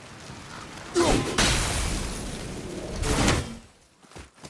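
A cloud of gas bursts with a loud hiss.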